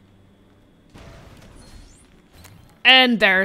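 A wooden chest smashes apart with a magical crackle.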